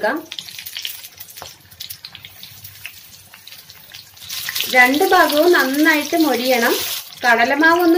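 Hot oil sizzles and crackles as food fries in a pan.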